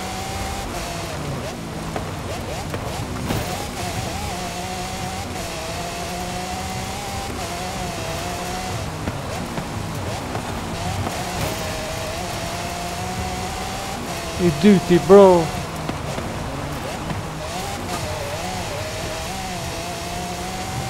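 A racing car engine roars and revs up and down as gears shift.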